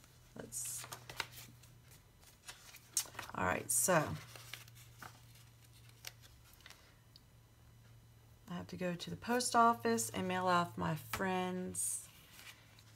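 Sticker sheets rustle and crinkle as they are handled.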